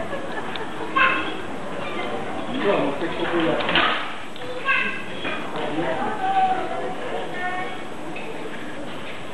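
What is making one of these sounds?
Adult men and women chat nearby.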